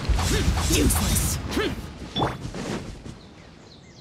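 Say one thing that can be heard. Magical blasts whoosh and crackle in a fight.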